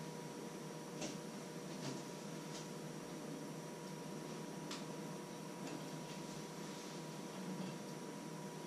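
Small kitchen items clatter on a countertop.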